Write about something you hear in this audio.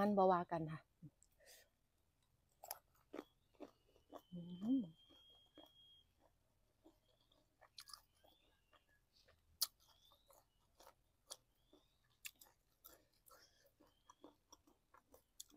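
A young woman chews crunchy food loudly close to a microphone.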